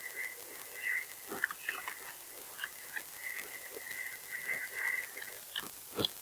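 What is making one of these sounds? A glider whistles steadily through the air.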